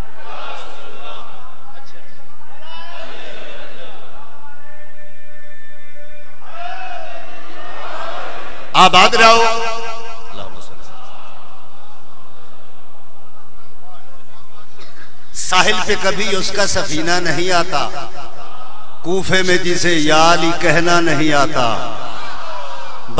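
A man chants loudly into a microphone in a reverberant hall.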